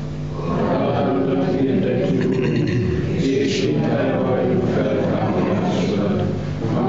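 A middle-aged man prays aloud in a slow, steady voice through a microphone.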